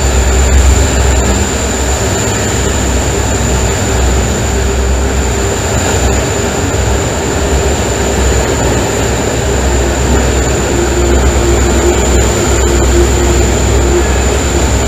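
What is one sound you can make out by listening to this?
A train rumbles and clatters loudly through a tunnel, its noise echoing off the walls.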